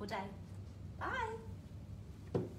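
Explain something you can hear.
A woman speaks cheerfully and with animation, close to a microphone.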